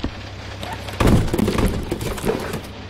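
A cardboard box thuds and bumps onto a hard floor.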